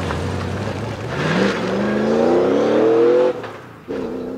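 A race car engine revs hard and roars away.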